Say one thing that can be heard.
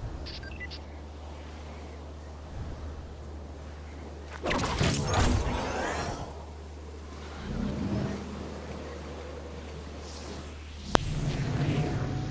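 Wind rushes steadily during a fall through the air.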